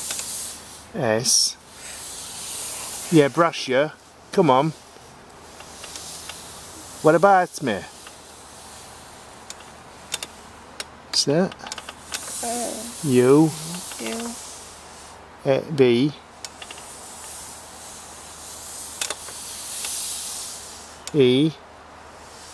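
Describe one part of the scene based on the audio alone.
A man speaks in short, quiet phrases nearby.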